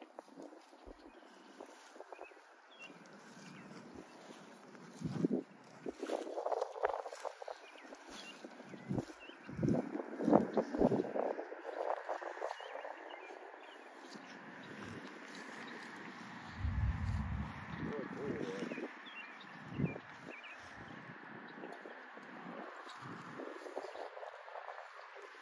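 A dog sniffs busily at the grass close by.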